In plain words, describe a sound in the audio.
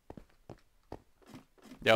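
Footsteps clatter on a wooden ladder.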